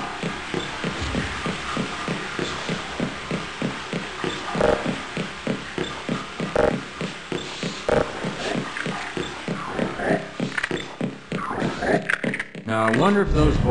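Footsteps clank quickly and steadily on a metal floor.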